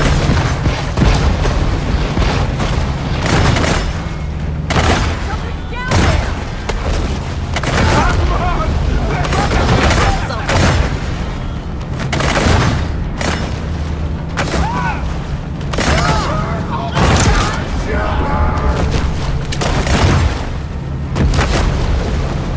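Water splashes loudly in bursts.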